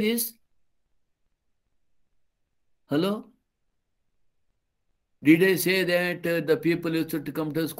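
An elderly man speaks calmly through an online call, with long pauses.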